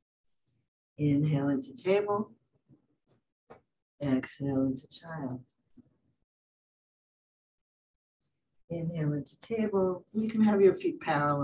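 A woman speaks calmly through a microphone, giving instructions in short phrases.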